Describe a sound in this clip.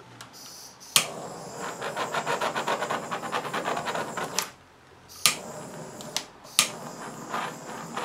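A heat gun blows with a steady whirring rush.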